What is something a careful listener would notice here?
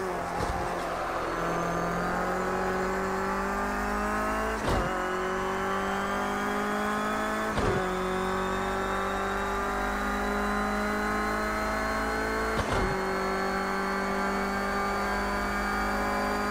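A racing car engine roars and revs higher through the gears.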